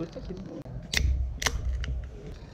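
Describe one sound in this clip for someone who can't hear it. An aluminium beer can is cracked open with a hiss.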